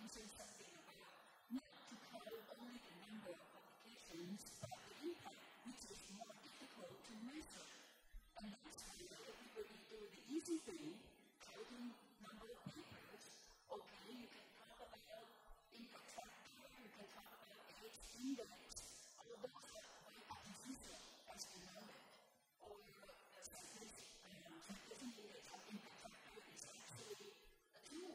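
An older woman speaks steadily and calmly into a close microphone.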